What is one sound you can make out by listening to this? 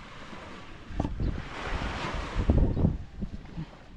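Wood knocks and scrapes against wood.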